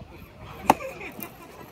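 A ball smacks sharply into a leather glove.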